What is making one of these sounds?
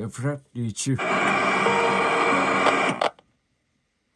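Loud static hisses from a small tablet speaker.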